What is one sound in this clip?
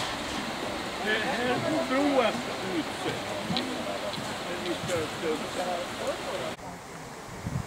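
Elderly men and women chat at a distance outdoors.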